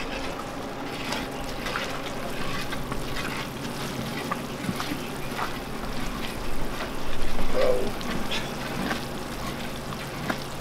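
A spoon scrapes against the side of a metal pot.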